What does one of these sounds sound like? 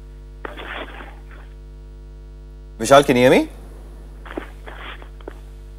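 A man speaks calmly over a phone line.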